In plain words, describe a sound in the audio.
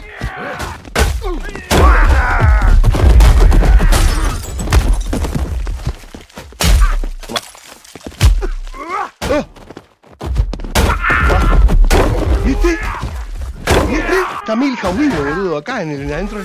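Heavy blows thud and smash in quick bursts.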